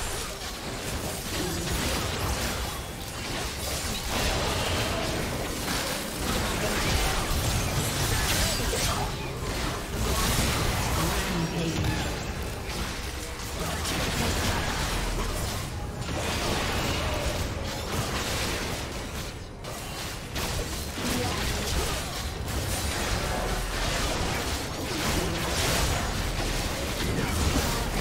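Fantasy battle sound effects of spells, blasts and clashing weapons burst continuously.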